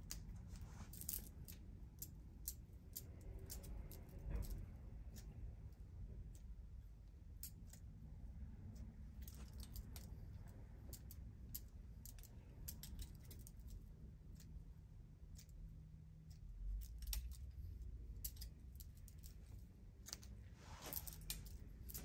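Scissors snip through hair close by.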